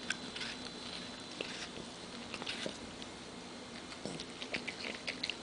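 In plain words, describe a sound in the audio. A small dog crunches and chews on a piece of apple up close.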